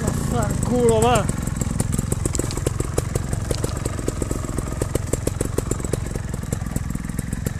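A dirt bike engine idles with a low, rapid chugging.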